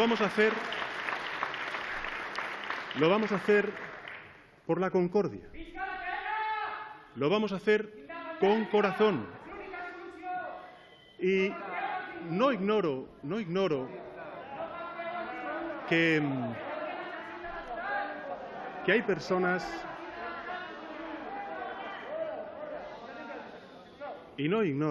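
A middle-aged man speaks calmly and steadily into a microphone in a large echoing hall.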